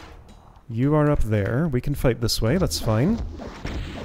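A fireball whooshes past and bursts.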